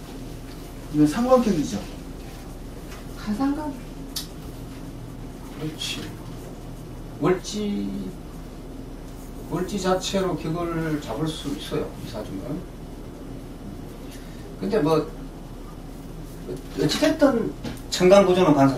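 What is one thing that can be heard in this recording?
An older man speaks calmly, close by, with pauses.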